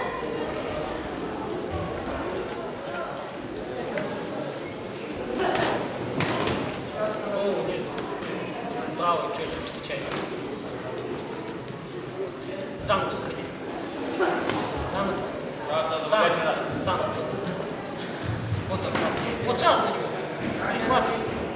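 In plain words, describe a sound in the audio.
Spectators shout and call out in a large echoing hall.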